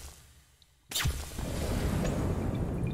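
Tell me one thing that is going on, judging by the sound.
Sparks hiss and crackle in a sudden burst.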